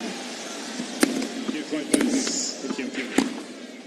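A tennis racket strikes a ball.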